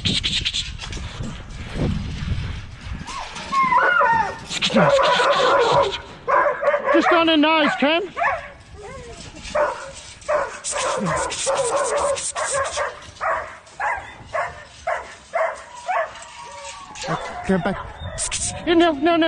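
Dog paws patter quickly on loose dirt.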